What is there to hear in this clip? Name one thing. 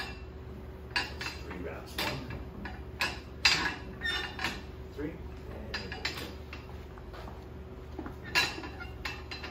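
Weight plates clank against the floor.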